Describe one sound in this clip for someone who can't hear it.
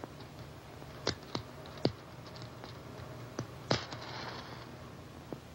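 A match scrapes and flares with a short hiss.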